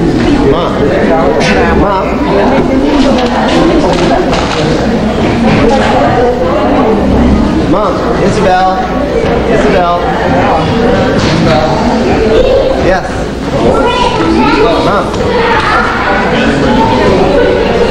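Many adults chatter in a large echoing hall.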